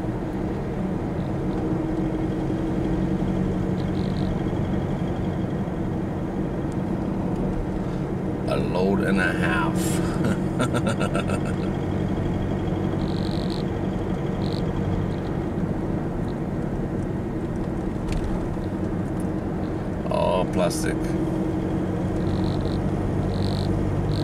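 Tyres roll and rumble on the road surface.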